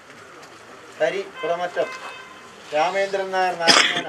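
A man chants loudly nearby.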